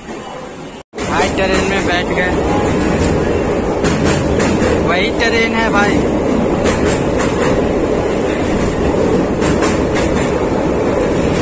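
A train rumbles steadily across a metal bridge.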